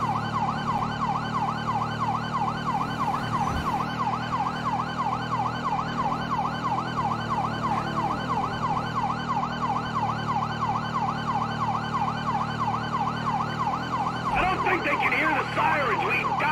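A police siren wails rapidly up and down without pause.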